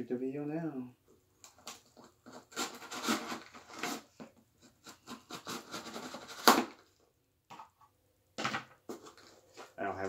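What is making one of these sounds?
Cardboard packaging rustles and scrapes as a box is opened.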